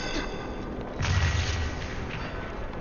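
A magical energy blast bursts with a loud whoosh.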